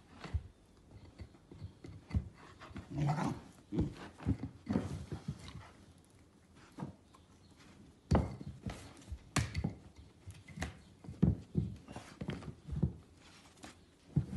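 A dog's paws scrabble and rustle on a soft bed.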